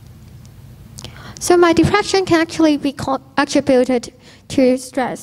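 A woman speaks calmly into a microphone over loudspeakers in a large echoing hall.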